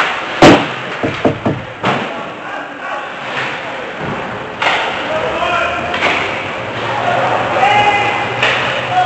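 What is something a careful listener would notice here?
Skates scrape across the ice.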